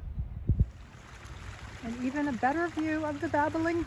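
A shallow creek trickles over stones.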